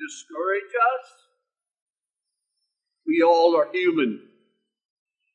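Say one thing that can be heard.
An elderly man speaks slowly and deliberately into a microphone, with a pause between phrases.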